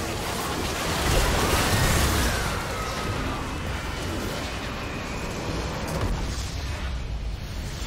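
A tower in a game crumbles with a loud rumbling crash.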